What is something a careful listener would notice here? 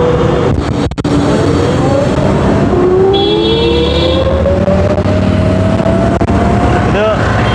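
An electric scooter motor whines, rising steadily in pitch as it speeds up.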